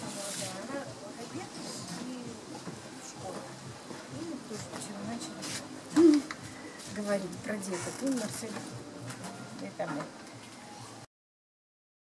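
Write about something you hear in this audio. Two women talk and laugh with animation close by.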